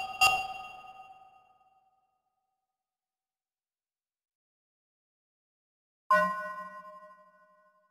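A bright electronic menu chime rings and fades.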